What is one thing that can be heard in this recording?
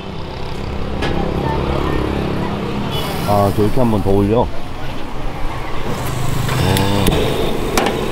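Food sizzles softly on a hot griddle.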